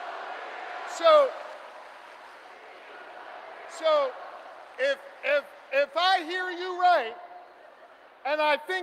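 A man speaks forcefully through a loudspeaker, echoing in a large hall.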